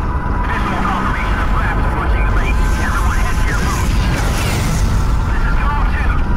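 A jet engine roars steadily nearby.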